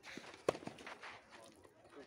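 A tennis ball is struck by a racket with a sharp pop.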